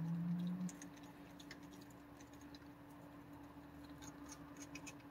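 A raccoon crunches food and clinks softly against a metal bowl.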